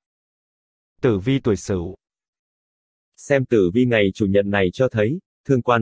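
A man speaks close to a microphone, in short bursts.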